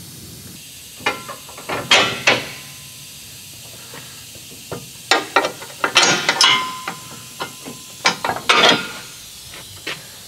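Metal tools clank and click under a vehicle.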